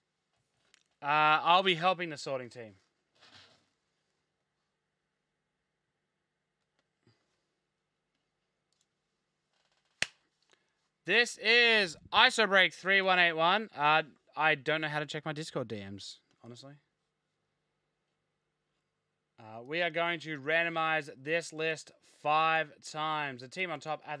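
A young man talks with animation into a close microphone, pausing between phrases.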